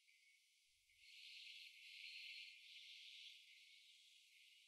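A choir of young men and women sings together.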